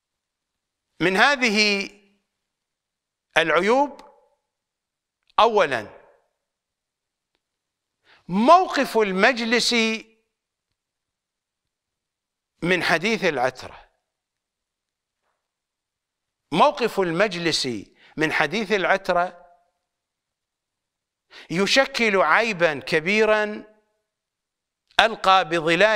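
An elderly man speaks emphatically into a close microphone, in bursts with long pauses.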